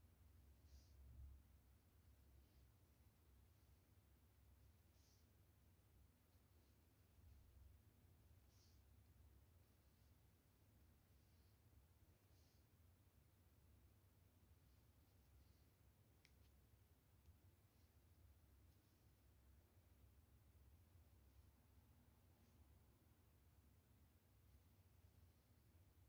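Fabric rustles faintly as it is handled.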